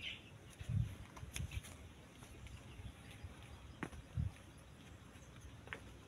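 Hooves shuffle softly on damp dirt.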